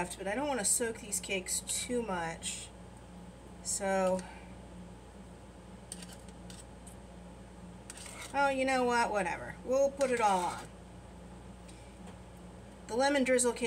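A metal spoon clinks against a muffin tin.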